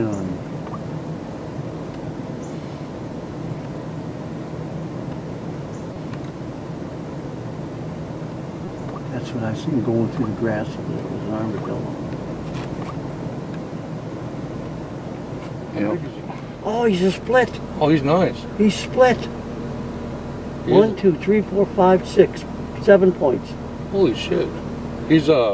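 A vehicle engine idles with a low steady hum.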